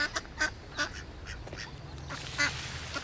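Ducks dabble and splash softly in water.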